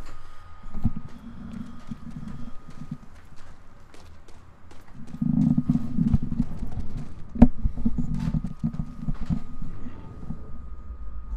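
Footsteps run quickly over debris and gravel.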